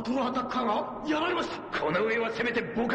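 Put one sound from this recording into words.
A man answers in a gruff, angry voice.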